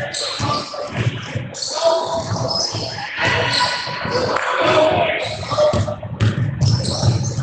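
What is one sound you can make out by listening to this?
Spectators cheer and shout.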